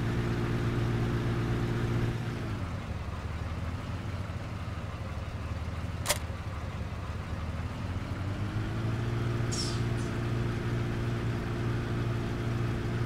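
A truck engine hums steadily, dropping low as the truck slows and rising again as it speeds up.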